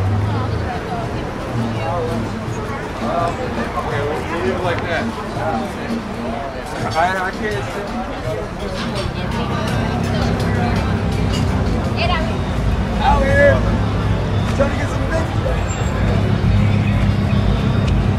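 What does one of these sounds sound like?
A crowd of people talk and chatter around outdoors.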